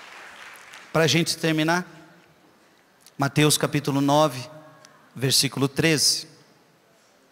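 A man speaks slowly and calmly into a microphone, heard through loudspeakers.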